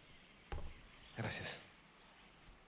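A man says a short word softly up close.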